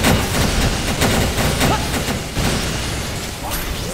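Electric crackling bursts out sharply.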